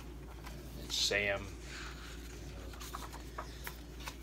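Stiff pages of a large book rustle as they are turned.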